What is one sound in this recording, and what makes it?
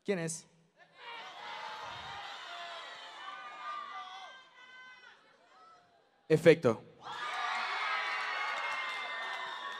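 A crowd of young women cheers and screams.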